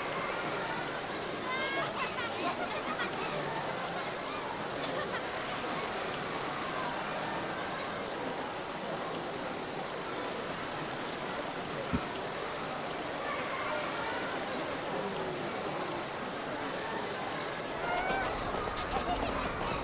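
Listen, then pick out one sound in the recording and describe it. A crowd chatters and calls out all around.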